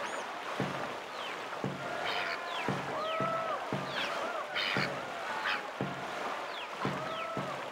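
Water rushes steadily past a moving canoe.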